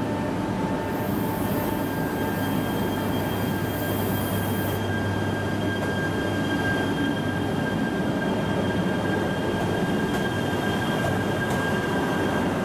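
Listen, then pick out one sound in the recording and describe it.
A train pulls away and rolls past with a rising whir.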